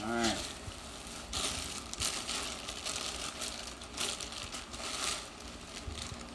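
Plastic bags rustle and crinkle as hands rummage through them.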